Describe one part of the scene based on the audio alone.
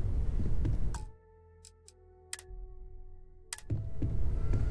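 Soft electronic tones chime and hold briefly.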